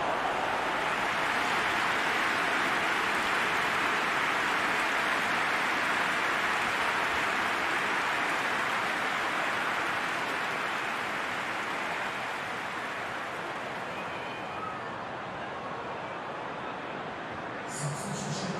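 A stadium crowd roars loudly and slowly fades.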